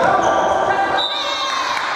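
Sneakers squeak on a hard court in a large echoing gym.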